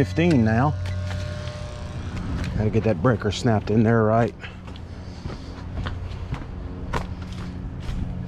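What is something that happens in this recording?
Footsteps crunch on grass and leaves outdoors.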